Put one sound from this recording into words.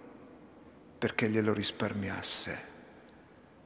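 A man speaks briefly through a microphone, echoing in a large hall.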